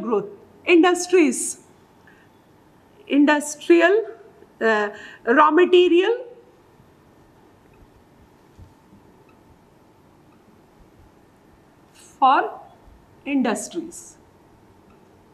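A woman speaks calmly and clearly, as if explaining, close to a microphone.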